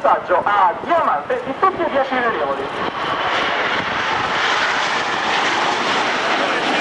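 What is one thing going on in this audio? Jet planes roar overhead, growing steadily louder.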